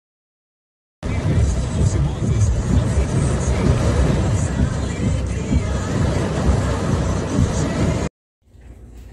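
Heavy rain drums on a car's windshield.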